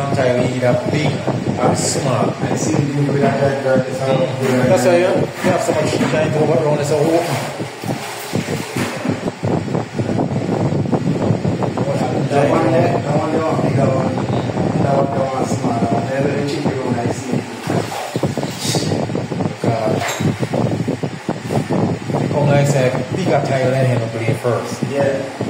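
A man talks steadily and calmly, close by.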